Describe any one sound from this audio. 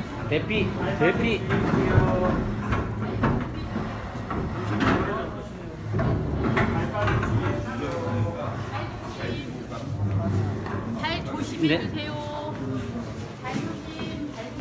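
Several men talk over one another close by.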